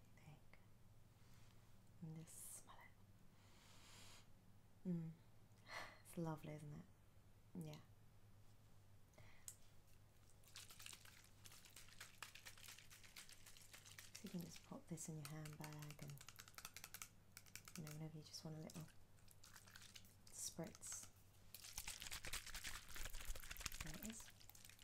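A young woman speaks calmly and close to the microphone, in short phrases.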